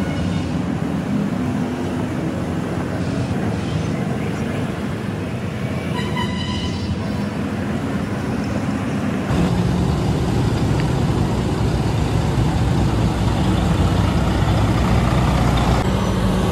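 A heavy truck engine rumbles steadily nearby, growing louder partway through.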